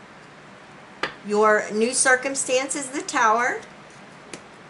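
Playing cards flick and tap in hands.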